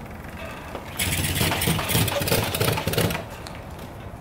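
A motorcycle engine sputters loudly for a moment.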